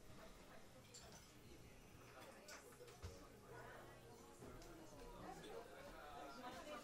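An electric guitar is plucked softly, notes ringing through an amplifier.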